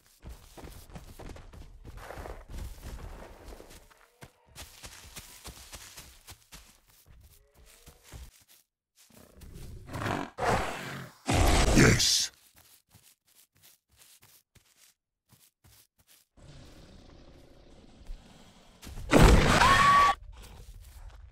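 Light footsteps rustle through tall grass.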